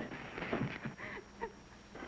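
A woman speaks in a strained, upset voice.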